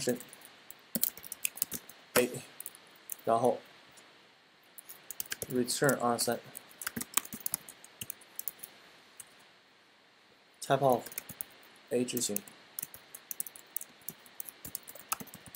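Keys clack rapidly on a computer keyboard.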